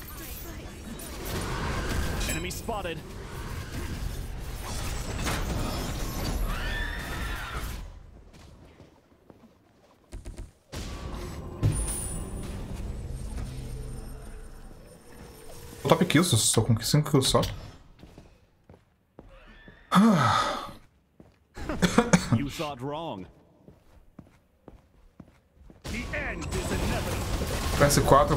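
Video game magic blasts and whooshes burst loudly.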